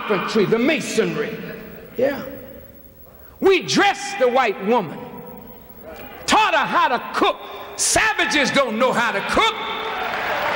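A man speaks forcefully through a microphone in a large echoing hall.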